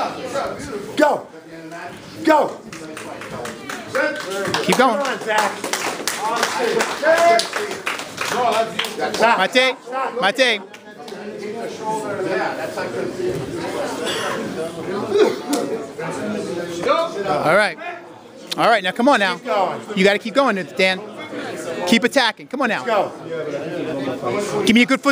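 Feet shuffle and thump on mats as two judo fighters grapple.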